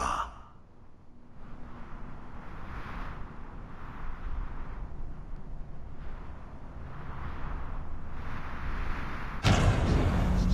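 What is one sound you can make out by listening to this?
A monstrous creature growls and snarls up close.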